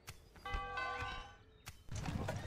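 A soft chime rings as a message pops up.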